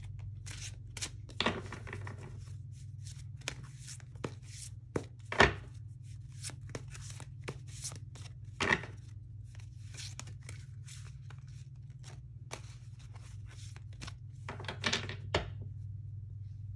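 Cards shuffle and tap with soft clicks and rustles.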